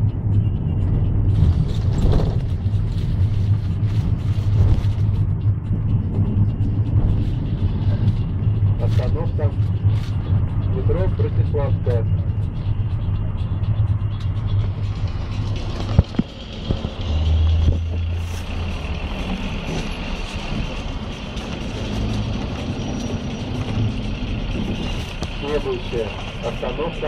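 A vehicle engine hums steadily from inside a moving car.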